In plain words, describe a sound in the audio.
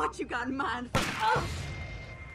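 A gunshot cracks.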